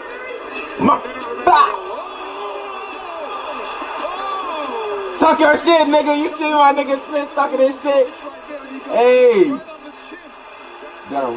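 A young man talks and exclaims with animation close to a microphone.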